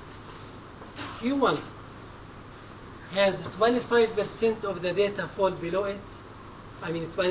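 A man speaks calmly through a microphone, in bursts with pauses.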